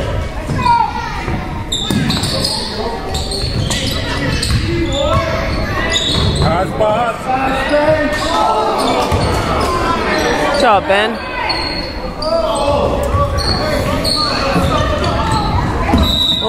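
Sneakers squeak sharply on a hardwood court.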